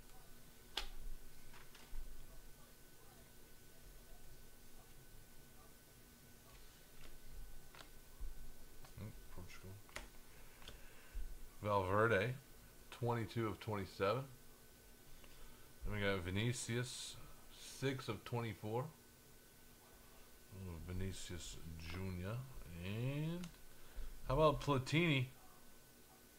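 Trading cards slide and click against each other in hands.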